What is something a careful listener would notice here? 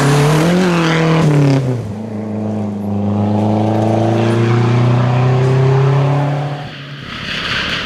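A rally car engine roars loudly, revving and shifting gears as it speeds away.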